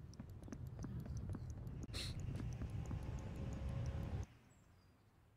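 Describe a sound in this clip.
A deep rumbling game soundtrack plays with ticking clicks, then cuts off.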